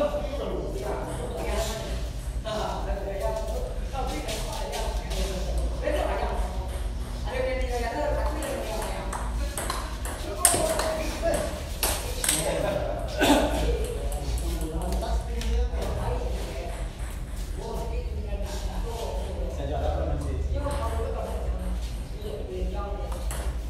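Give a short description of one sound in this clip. A table tennis ball clicks back and forth between paddles and the table.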